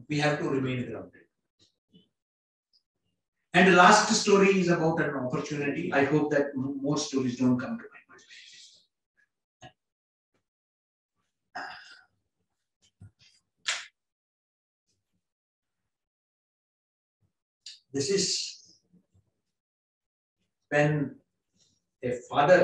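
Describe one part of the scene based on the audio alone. A man speaks into a microphone with animation, in short bursts and pauses.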